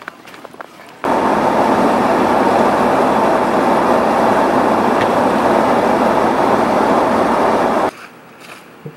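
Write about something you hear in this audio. A car drives steadily along a road with a loud rushing noise.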